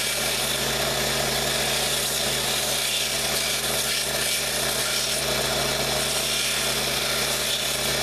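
Wood grinds against a belt sander.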